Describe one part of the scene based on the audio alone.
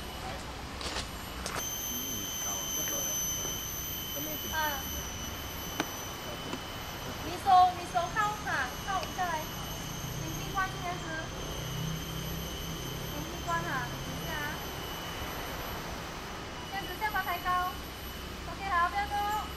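A small waterfall splashes steadily nearby.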